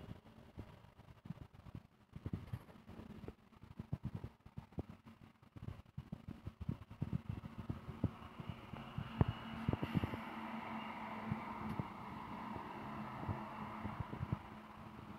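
A truck engine rumbles close by and grows louder as the truck approaches.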